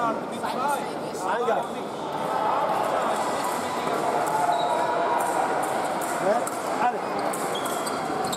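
Fencers' feet thump and squeak on the floor.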